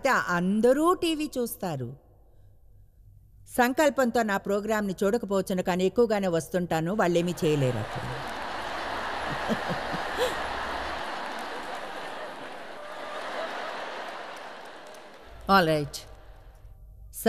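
A woman speaks with animation into a microphone in a large hall.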